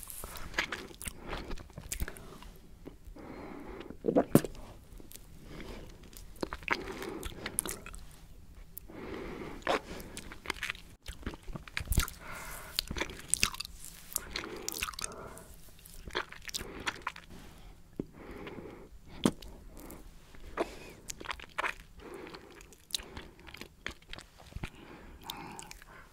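A woman licks and sucks on an ice lolly with wet smacking sounds, close to a microphone.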